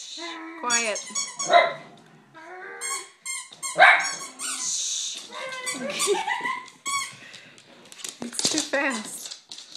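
Dogs yap and bark excitedly.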